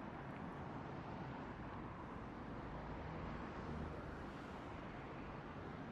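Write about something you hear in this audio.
City traffic rumbles steadily outdoors.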